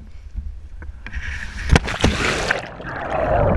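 A man plunges into the sea with a splash.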